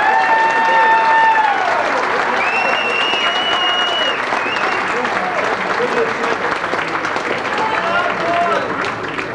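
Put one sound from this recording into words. Two acoustic guitars are strummed and picked together.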